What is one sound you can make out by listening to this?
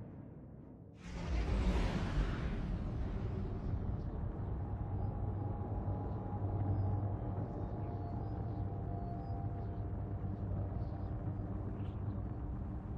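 Spaceship engines rumble low and steady.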